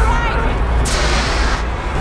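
A fire extinguisher hisses.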